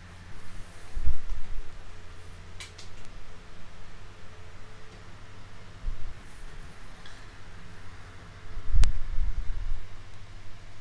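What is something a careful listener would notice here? Small tools tap and knock softly on a tabletop.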